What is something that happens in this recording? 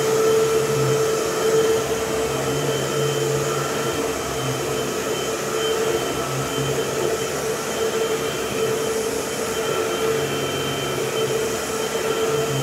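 A vacuum cleaner rolls back and forth over a rug.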